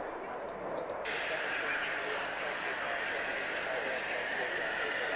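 A twin-engine jet fighter roars with its afterburner lit on a runway.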